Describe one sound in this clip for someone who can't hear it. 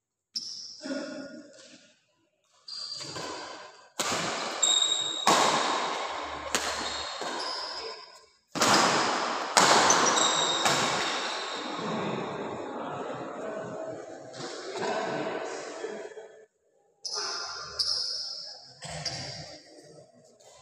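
Badminton rackets smack a shuttlecock in a rally, echoing in a large hall.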